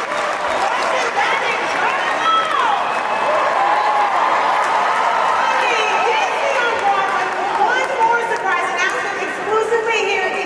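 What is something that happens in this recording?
Members of a crowd whistle shrilly.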